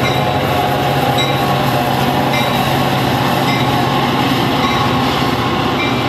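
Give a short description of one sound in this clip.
A train's wheels clatter over the rails.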